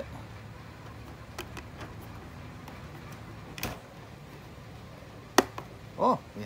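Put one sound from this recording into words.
A cable plug clicks into a device.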